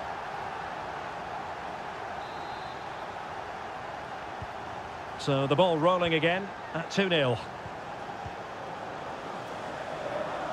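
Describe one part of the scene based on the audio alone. A stadium crowd cheers and murmurs.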